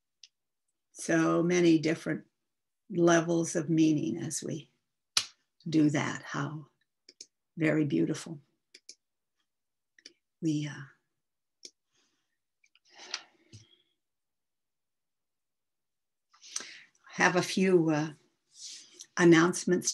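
An elderly woman speaks warmly and with animation, heard through an online call, with pauses between phrases.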